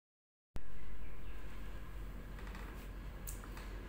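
A woman sits down on a bed with a soft rustle of fabric.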